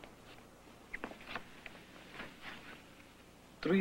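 A man speaks quietly and briefly.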